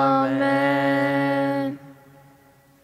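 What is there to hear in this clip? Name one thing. A man sings a long note through a microphone.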